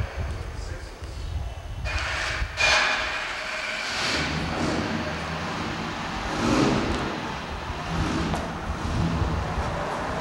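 Tyres crunch slowly over gravel.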